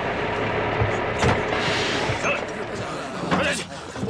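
Boots thud on the ground as soldiers jump down from a truck.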